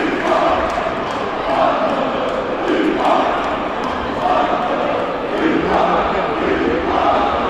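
A large crowd of fans chants loudly in unison, echoing through a big arena.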